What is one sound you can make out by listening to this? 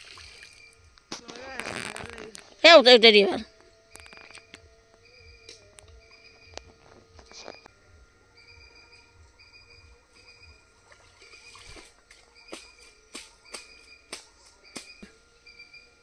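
Water splashes softly as things are rinsed in shallow pond water.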